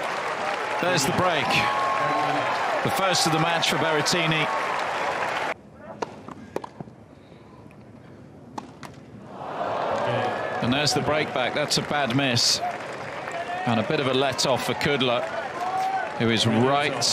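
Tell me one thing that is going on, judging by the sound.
A large outdoor crowd cheers and applauds.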